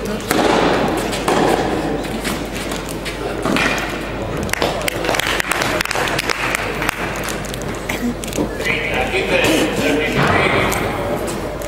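Tennis balls are hit back and forth with sharp pops of the racket.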